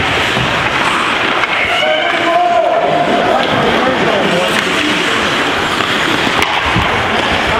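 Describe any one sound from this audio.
A hockey stick knocks against a puck.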